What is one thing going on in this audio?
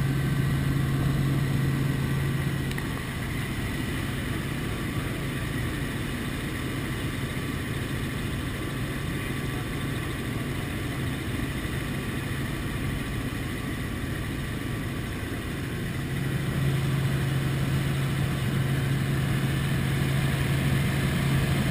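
Wind rushes loudly past an open window.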